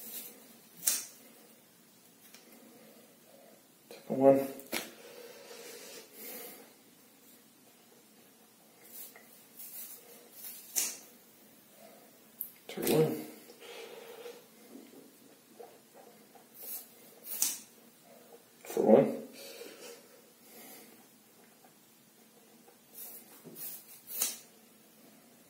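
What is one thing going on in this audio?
Scissors snip sharply through thick hair.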